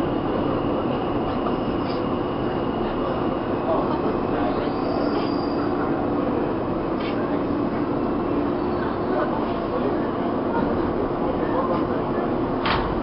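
A subway train rumbles and rattles steadily along the tracks.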